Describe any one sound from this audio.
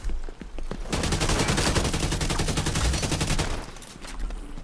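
Automatic gunfire rattles in a rapid burst.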